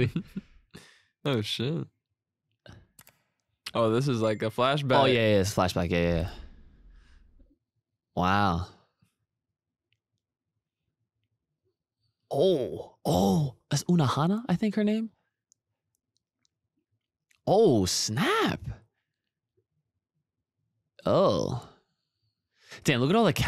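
A young man speaks with animation into a nearby microphone, with pauses.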